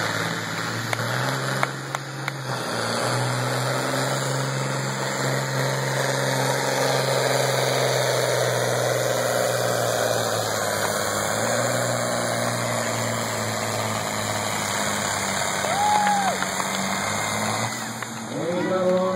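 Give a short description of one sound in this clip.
A tractor engine roars loudly and steadily.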